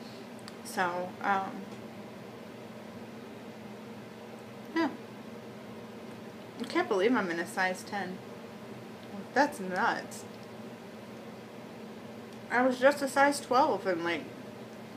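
A young woman speaks calmly and close by, in short bursts with pauses.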